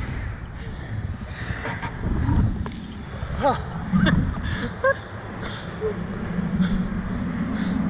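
Wind rushes loudly past a microphone outdoors.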